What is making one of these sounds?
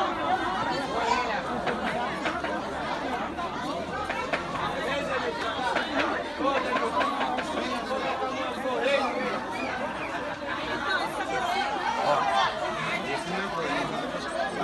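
Several men shout and talk over one another outdoors.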